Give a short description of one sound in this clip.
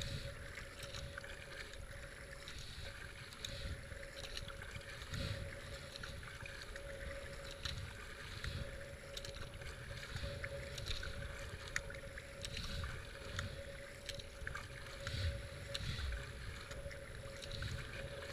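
A kayak paddle splashes rhythmically into the water.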